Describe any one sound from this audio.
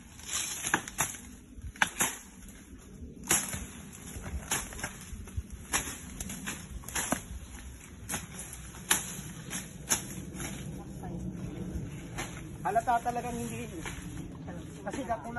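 A machete chops sharply into plants and stems, again and again.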